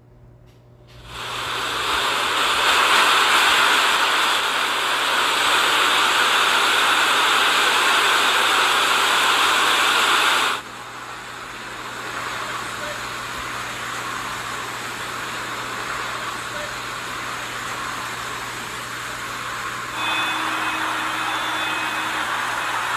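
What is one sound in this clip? Floodwater rushes and churns steadily.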